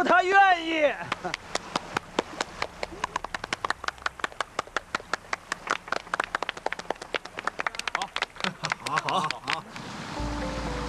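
A crowd of people claps and applauds.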